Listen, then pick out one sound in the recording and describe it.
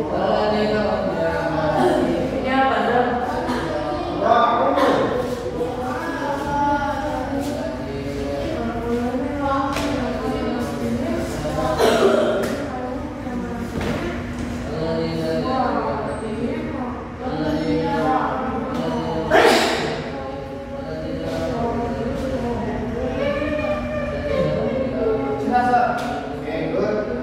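Teenage boys chatter and talk at once nearby, in a room with some echo.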